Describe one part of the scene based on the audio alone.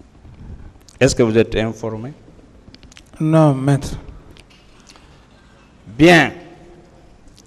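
A man speaks in short, measured bursts through a microphone.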